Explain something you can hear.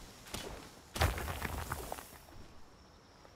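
A large bird flaps its wings with a whooshing gust.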